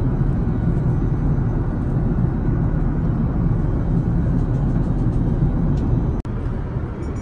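A jet engine roars steadily outside the window of an airliner.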